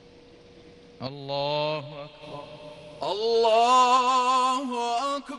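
A man chants in a long, drawn-out voice through loudspeakers, echoing across a wide open space.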